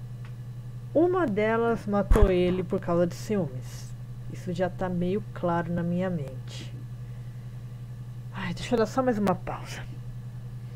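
A young woman speaks close up, in a quiet, thoughtful voice.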